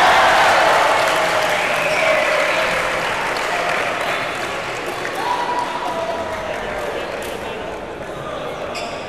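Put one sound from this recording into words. A crowd cheers loudly in a large echoing hall, then quiets down.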